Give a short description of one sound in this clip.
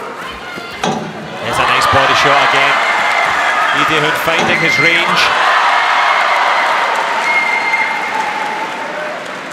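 A crowd cheers loudly in a large hall.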